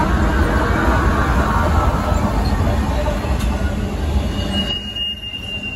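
A diesel locomotive engine rumbles loudly as it passes close by.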